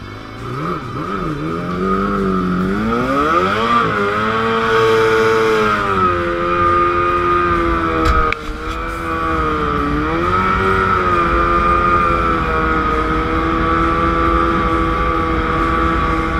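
A racing boat engine roars loudly, its pitch rising and falling with the throttle.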